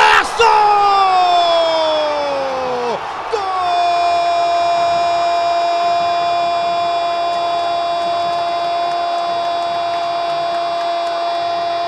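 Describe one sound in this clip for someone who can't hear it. A stadium crowd cheers and roars loudly.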